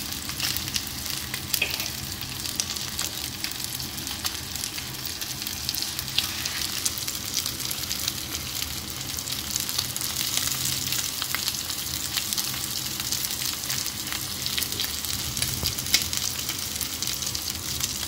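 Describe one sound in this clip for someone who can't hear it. Steaks sizzle and crackle steadily in a hot pan.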